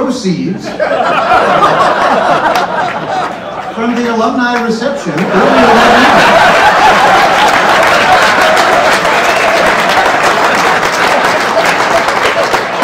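An older man laughs into a microphone.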